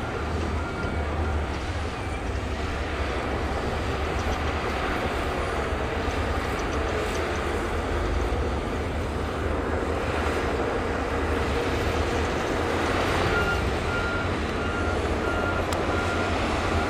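Wind blows across open ground.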